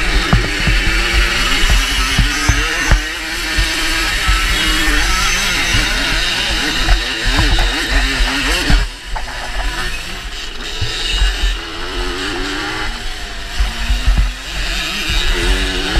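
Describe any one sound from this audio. A motorcycle engine revs loudly up close, rising and falling in pitch.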